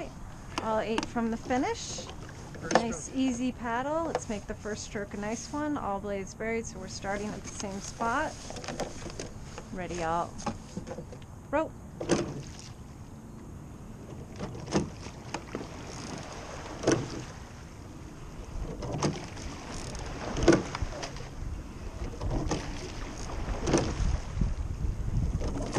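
Oars splash and knock rhythmically in the water.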